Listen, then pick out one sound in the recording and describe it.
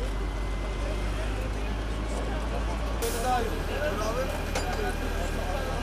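Several men talk and call out nearby, outdoors.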